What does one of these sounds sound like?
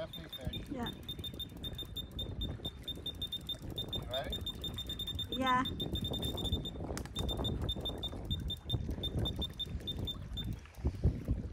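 An electronic bite alarm beeps rapidly and steadily.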